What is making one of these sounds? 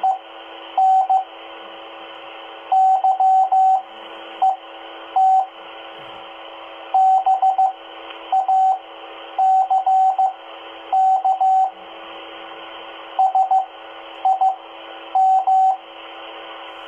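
A two-way radio gives out bursts of short, rapid beeps.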